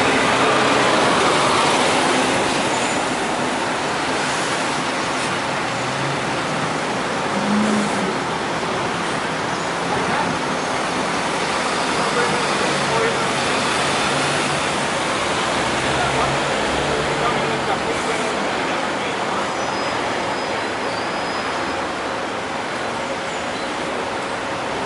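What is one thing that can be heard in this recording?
Traffic noise fills a busy street outdoors.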